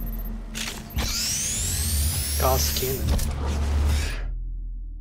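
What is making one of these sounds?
A rising electronic hum charges up.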